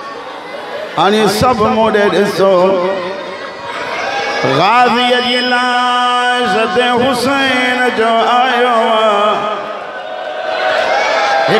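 A man chants loudly and with feeling through a microphone.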